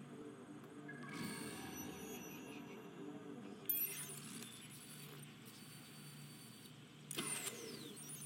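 Electronic whooshing tones sound as a game switches into a scanning mode.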